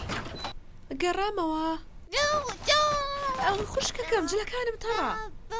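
A young girl speaks loudly with animation.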